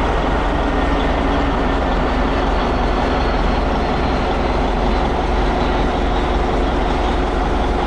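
A jet airliner roars overhead on approach.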